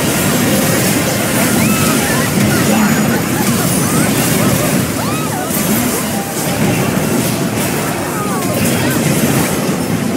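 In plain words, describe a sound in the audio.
Spell effects crackle and blast in a busy game fight.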